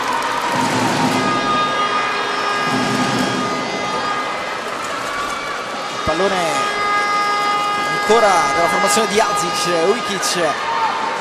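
A large crowd murmurs and cheers in an echoing indoor arena.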